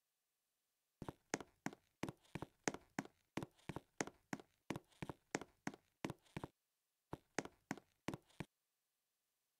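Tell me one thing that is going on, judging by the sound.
Footsteps tap quickly and evenly on a hard floor.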